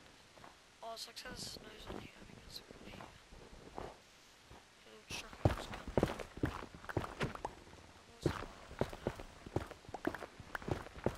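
A pickaxe chips and breaks blocks in quick, repeated knocks.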